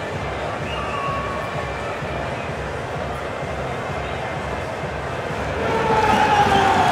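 A crowd murmurs and chatters outdoors.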